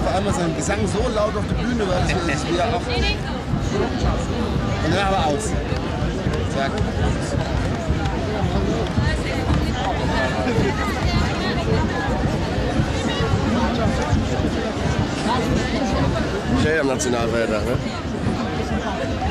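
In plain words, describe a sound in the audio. A large crowd of men and women chatters and calls out loudly outdoors.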